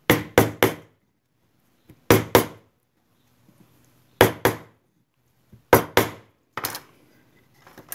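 A mallet taps repeatedly on a hard surface, in sharp knocks.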